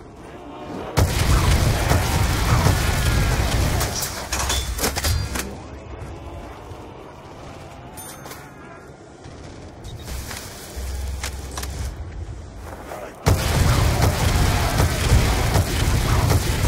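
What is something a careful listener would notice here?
Explosions boom and crackle in quick bursts.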